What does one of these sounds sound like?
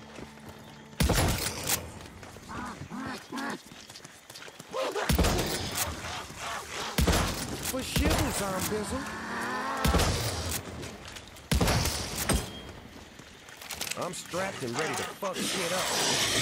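Gunshots ring out in short bursts.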